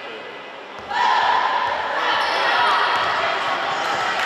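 Young players shout a loud cheer together in an echoing hall.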